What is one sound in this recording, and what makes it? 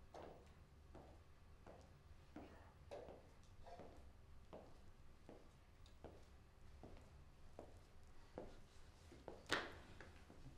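Slow footsteps and a walking cane tap on a hard floor.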